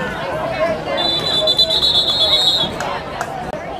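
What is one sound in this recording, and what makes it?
A referee's whistle blows one long, shrill blast.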